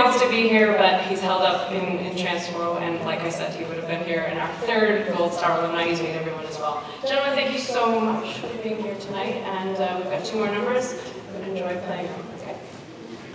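A big band plays in a large echoing hall.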